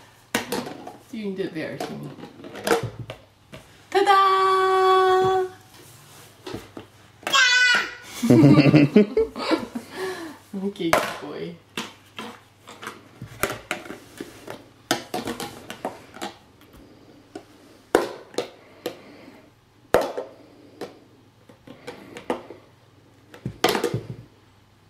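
Plastic toys knock and clatter on the floor.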